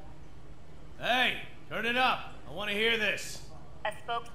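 A young man answers calmly, close by.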